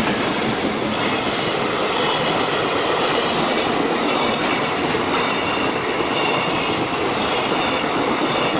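Metal wheels squeal against the rails.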